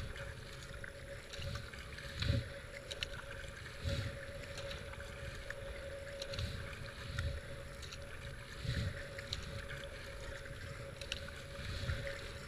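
A paddle splashes and swishes through water in regular strokes.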